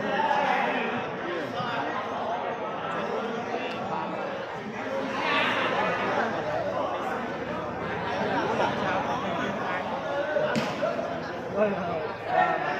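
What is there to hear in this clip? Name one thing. A large crowd chatters and calls out steadily in a big echoing hall.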